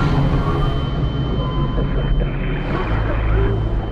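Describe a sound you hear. Water sloshes and laps close by at the surface.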